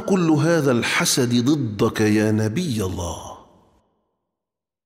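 An elderly man speaks with agitation, close by.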